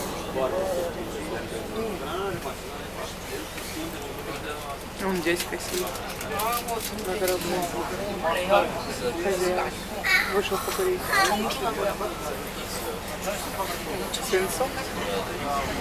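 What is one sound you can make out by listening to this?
Men and women chatter nearby.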